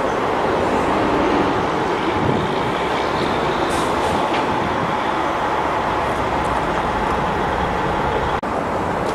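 Wind blows roughly outdoors.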